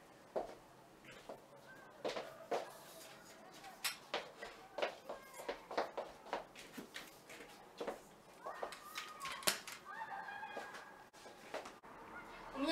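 Handling noises knock and clatter as a tripod is moved about.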